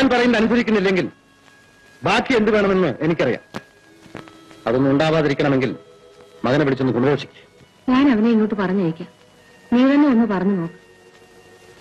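A woman speaks with feeling nearby.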